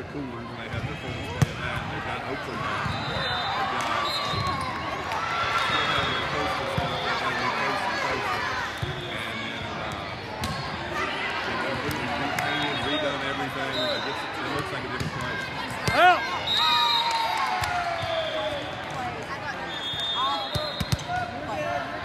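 Players' shoes squeak sharply on a court floor.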